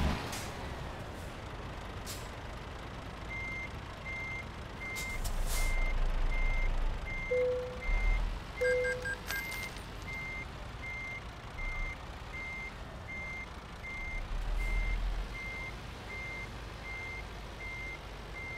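A diesel truck engine rumbles at low revs.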